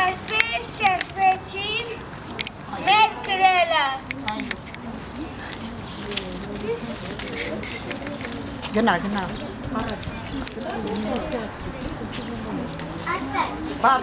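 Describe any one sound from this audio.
Young children talk and call out outdoors.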